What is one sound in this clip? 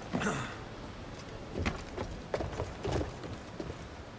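Hands and feet knock against a wooden scaffold during a climb.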